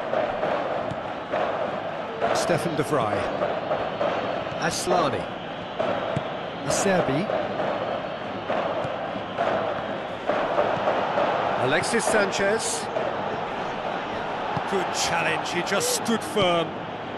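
A stadium crowd roars in a continuous wash of noise.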